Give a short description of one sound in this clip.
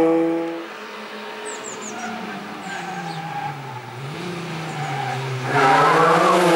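A rally car engine revs hard, rising and falling in pitch as it approaches.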